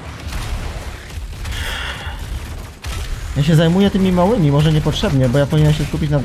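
Gunshots and explosions boom in a video game.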